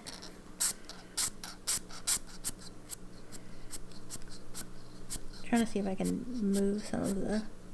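Liquid drips from a syringe onto paper.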